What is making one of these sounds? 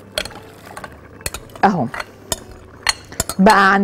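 Grains pour and splash into liquid in a pot.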